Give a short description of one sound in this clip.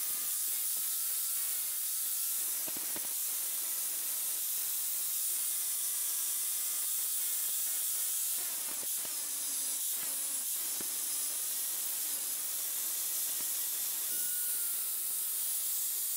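An angle grinder whines at high speed, grinding metal with a harsh hiss.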